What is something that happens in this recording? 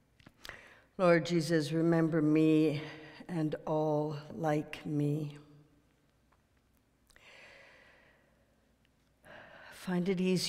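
An elderly woman speaks calmly into a microphone in a slightly echoing room.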